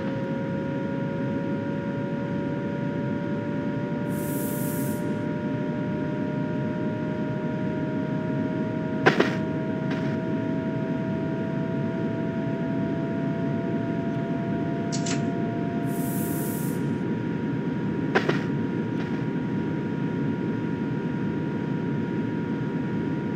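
A train engine hums steadily as the train rolls along the tracks.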